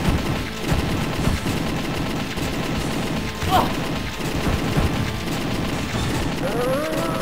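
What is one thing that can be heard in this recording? Gunshots fire rapidly in a game.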